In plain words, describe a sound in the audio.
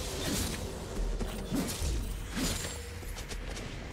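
Spell effects whoosh and crackle as game characters fight.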